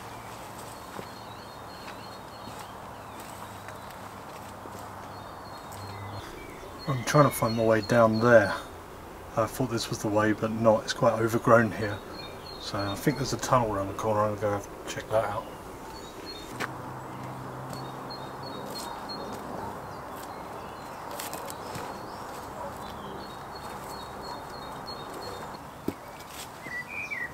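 A man's footsteps rustle through undergrowth and leaves.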